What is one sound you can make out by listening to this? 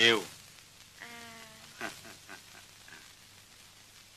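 A boy answers softly, close by.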